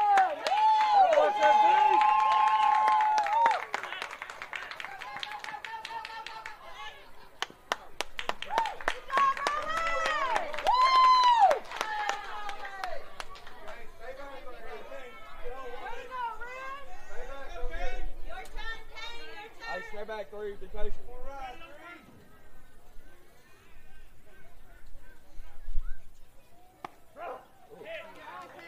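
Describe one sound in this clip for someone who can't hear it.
Young players shout and cheer outdoors across a ball field.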